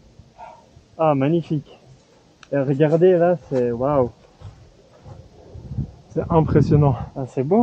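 A young man talks calmly, close by.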